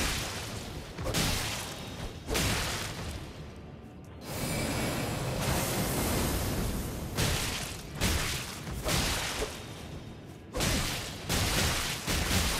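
A sword slashes and strikes flesh again and again.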